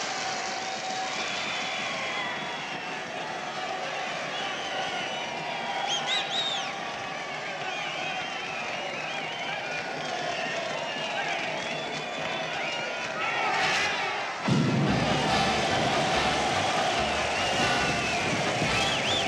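A large crowd cheers and chatters loudly.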